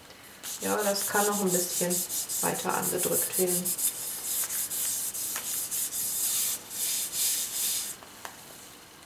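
Hands rub briskly over a sheet of paper with a soft, rapid swishing.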